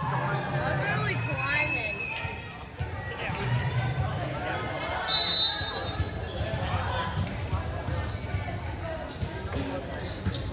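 Players and onlookers chatter and call out in a large echoing gym.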